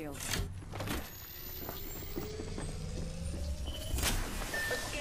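An electric whine slowly rises in pitch as a battery charges up.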